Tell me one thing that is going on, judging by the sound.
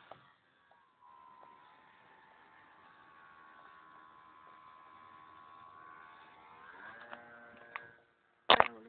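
A small model plane engine buzzes steadily overhead.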